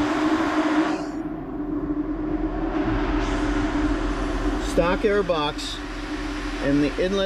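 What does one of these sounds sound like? A car engine idles with a low, steady rumble nearby.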